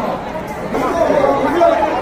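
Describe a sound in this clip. A crowd of people chatters noisily nearby.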